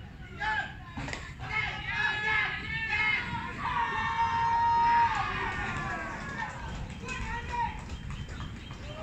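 Men shout and cheer across an open field.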